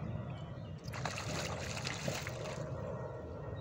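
Water splashes loudly near the shore.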